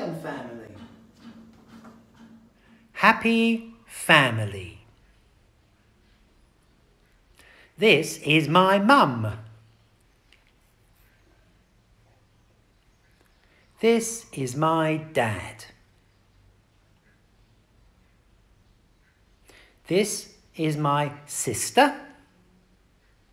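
An elderly man reads out slowly and clearly, close by, pausing between short phrases.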